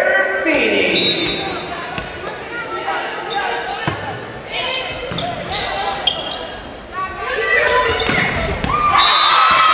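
A volleyball is struck with sharp smacks in a large echoing gym.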